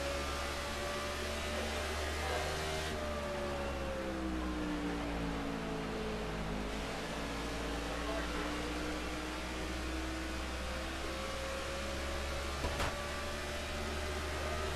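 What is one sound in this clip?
A race car engine roars steadily, its pitch dipping and rising as it slows and speeds up.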